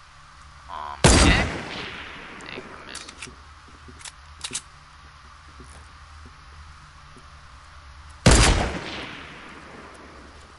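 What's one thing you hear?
A sniper rifle fires two loud shots that echo away.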